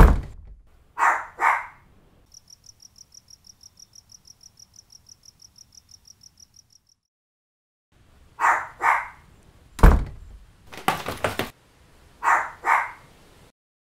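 A small dog barks twice in quick succession.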